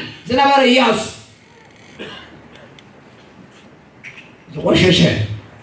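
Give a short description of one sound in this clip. An elderly man speaks with emphasis into a microphone, heard through a loudspeaker in a large echoing hall.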